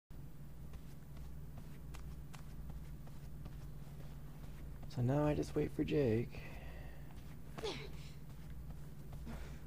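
Footsteps run hurriedly across a hard floor.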